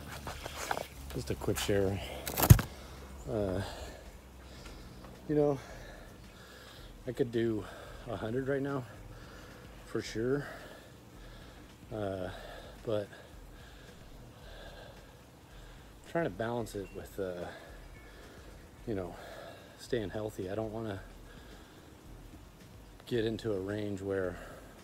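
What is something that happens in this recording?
A middle-aged man talks with animation close to the microphone, outdoors.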